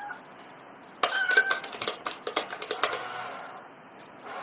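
A toy coin bank's lid clicks and clatters.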